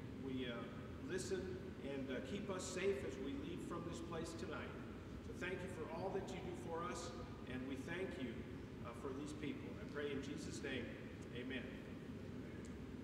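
A man speaks calmly to an audience in an echoing hall.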